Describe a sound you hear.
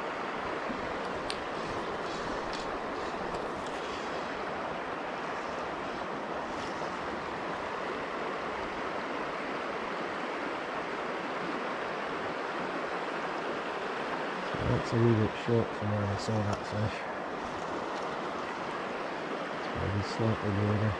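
A river flows and gurgles steadily close by.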